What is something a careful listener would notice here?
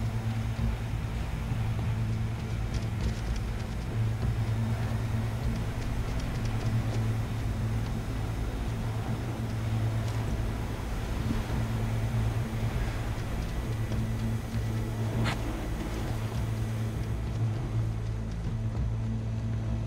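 Footsteps walk over concrete.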